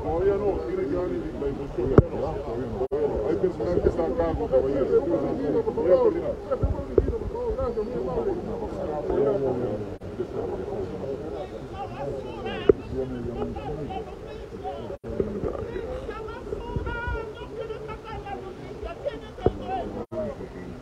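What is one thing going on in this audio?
A crowd of men and women talk and shout over each other outdoors.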